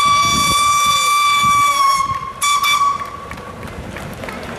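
A steam whistle blows a long, shrill note, then a short one.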